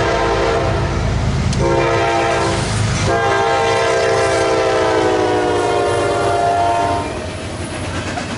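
A locomotive engine roars past.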